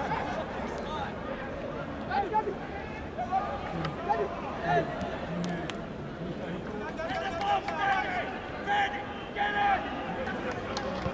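A sparse stadium crowd murmurs in the distance.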